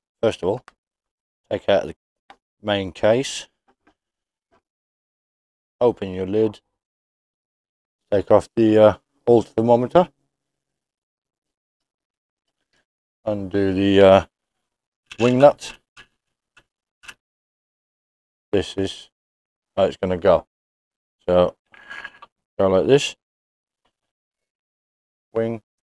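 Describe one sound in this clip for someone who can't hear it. A man talks calmly and close by, in short bursts with pauses.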